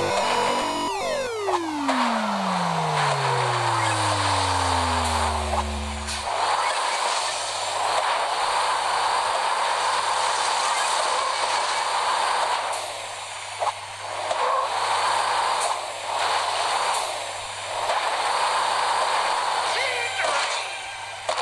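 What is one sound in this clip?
A small engine roars and revs steadily.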